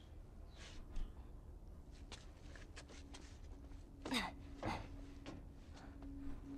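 Footsteps scuff and shuffle on a hard floor.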